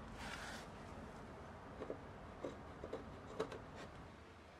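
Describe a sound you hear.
Wooden sticks knock and tap lightly against each other.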